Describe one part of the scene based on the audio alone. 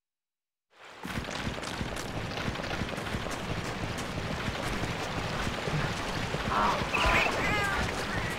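Footsteps crunch over gravel.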